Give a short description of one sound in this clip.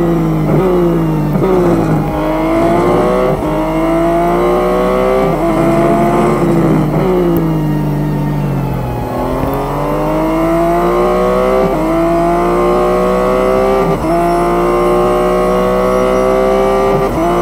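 A racing car engine roars loudly, rising in pitch and dropping sharply at each gear change.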